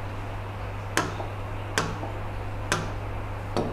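A pen taps sharply against a hard board several times.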